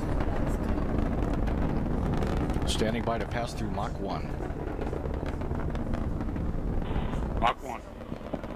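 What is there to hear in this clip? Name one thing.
A rocket engine roars with a deep, steady rumble.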